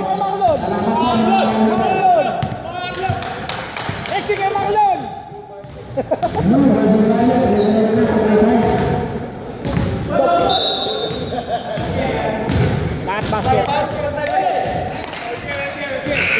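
Men shout and call out in a large echoing gym.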